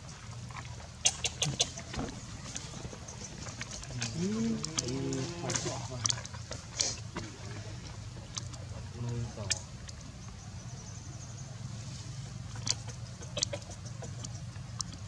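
Dry leaves rustle and crackle as monkeys move on the ground.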